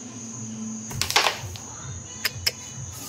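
Wooden game pieces click sharply against each other on a board.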